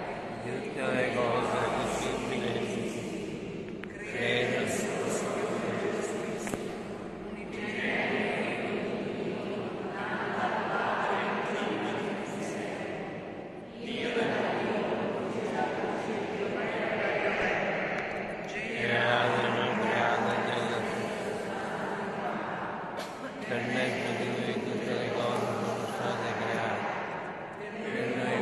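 A small group of voices sings a slow hymn in a large, echoing hall.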